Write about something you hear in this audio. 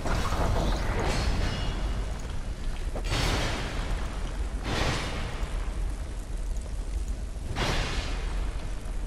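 A sword swooshes as it is swung through the air.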